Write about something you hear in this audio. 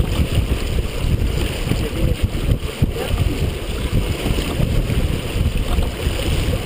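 Waves splash against the hull of a sailboat.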